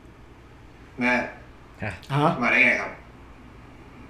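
A young man exclaims in surprise.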